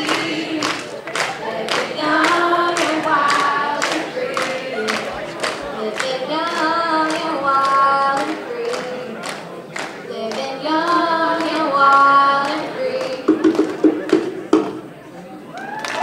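A young woman sings into a microphone in a large hall.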